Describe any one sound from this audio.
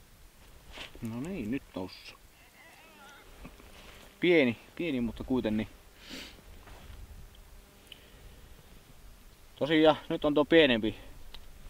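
A man speaks calmly and close by, outdoors in a quiet open space.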